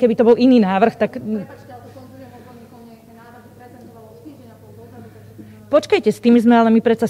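A woman speaks into a microphone with animation, close by, in a room with some echo.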